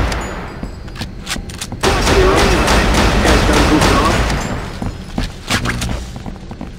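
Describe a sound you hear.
Gunfire bursts loudly in short, sharp shots.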